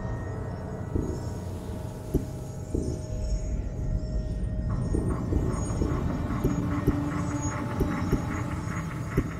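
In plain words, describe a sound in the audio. Soft menu clicks sound as a selection moves.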